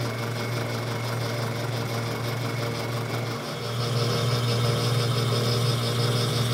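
A cutting tool scrapes and hisses against spinning wood.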